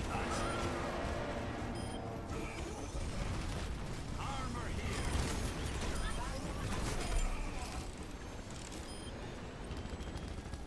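Rapid gunfire rattles and booms in a video game.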